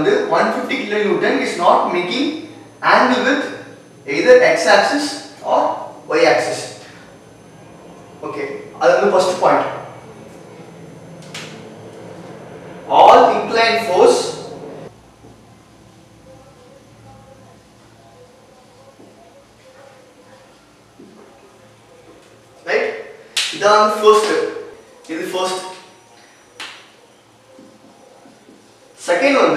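A young man explains calmly, close by.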